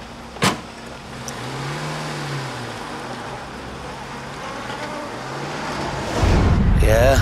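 A car engine idles and revs.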